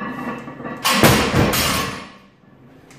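A loaded barbell drops and crashes onto the floor with loud metal clanks.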